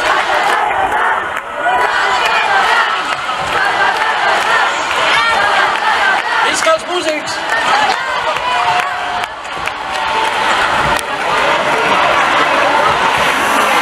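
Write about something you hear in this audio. A large crowd sings and cheers loudly.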